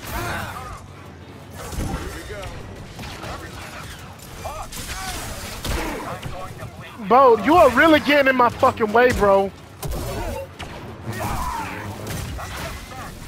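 A lightsaber hums and swooshes through the air.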